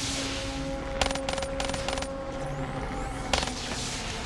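A gun fires quick bursts of shots.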